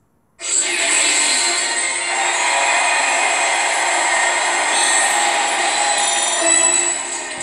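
Upbeat electronic game music plays loudly from a nearby speaker.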